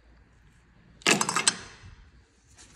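Lug nuts clatter into a metal tray.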